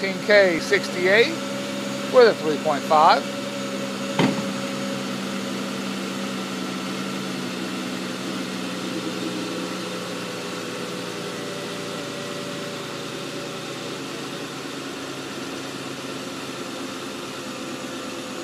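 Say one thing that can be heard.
A car's V6 petrol engine idles.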